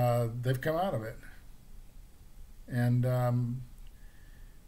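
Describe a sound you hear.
An older man speaks close to the microphone, with pauses.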